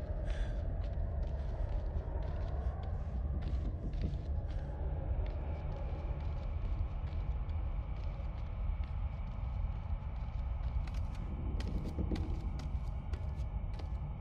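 Bare feet patter softly on wooden floorboards.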